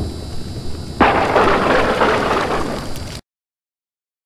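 A thunderclap cracks loudly and rumbles.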